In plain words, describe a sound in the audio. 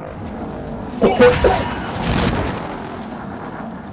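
Wind rushes past during a parachute descent.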